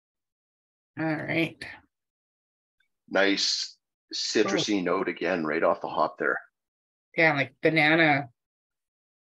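A man talks casually over an online call.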